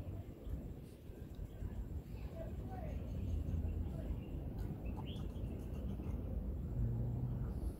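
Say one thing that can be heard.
Birds chirp outdoors.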